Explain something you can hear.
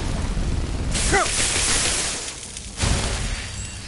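Lightning crackles and sizzles sharply.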